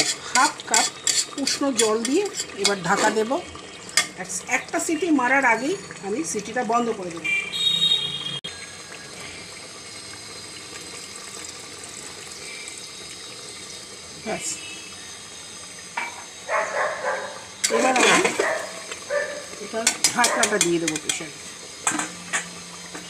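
A metal ladle clinks and scrapes against a pot.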